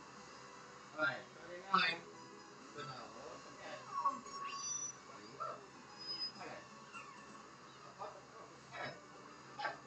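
Video game sound effects chirp and splash from a television.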